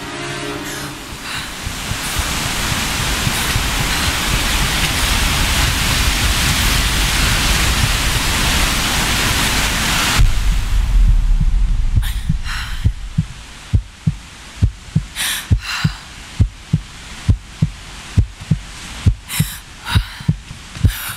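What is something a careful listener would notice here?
A waterfall rushes and roars loudly.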